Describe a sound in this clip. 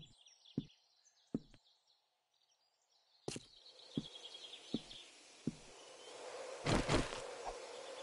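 Heavy footsteps thud on a wooden floor.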